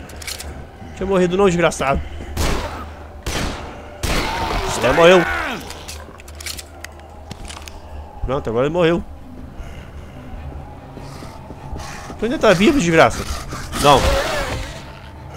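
A zombie snarls and groans nearby.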